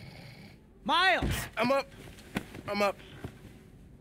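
A young man speaks groggily.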